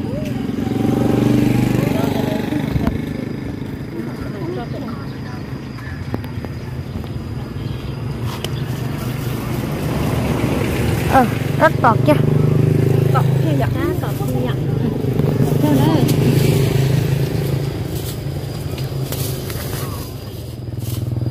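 Women talk casually nearby.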